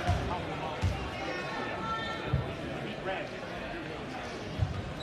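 A crowd murmurs and chatters in a large echoing gym.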